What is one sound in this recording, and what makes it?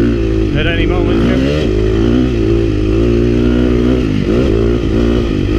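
A dirt bike engine roars close up, its pitch rising and falling as the rider shifts and throttles.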